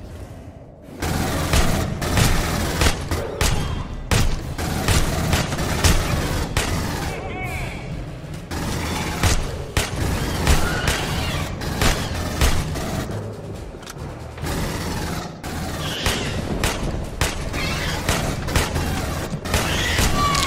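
A rifle fires shot after shot in quick bursts.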